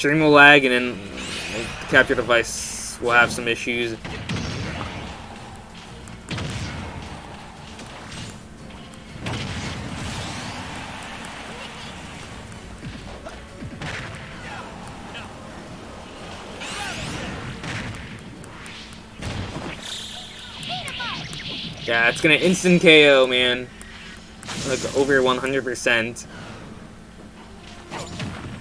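Video game fighting sounds play with hits and effects.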